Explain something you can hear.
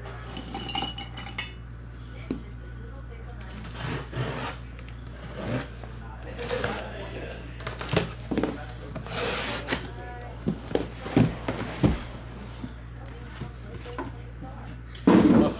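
Cardboard rustles and scrapes as a box is handled up close.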